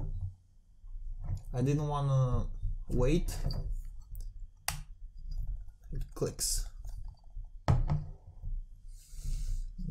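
A glass bottle clinks softly as it is picked up and set down.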